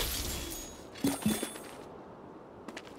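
Bright chimes ring out in quick succession.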